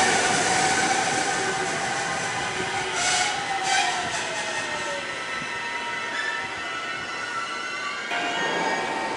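An electric train pulls away with a falling motor whine.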